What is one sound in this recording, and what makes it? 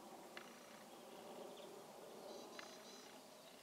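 Crow wings flap briefly as a crow lands nearby.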